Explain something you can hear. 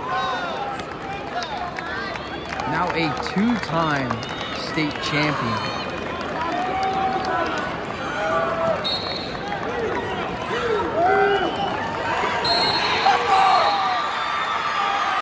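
A large crowd cheers and shouts throughout in a vast echoing arena.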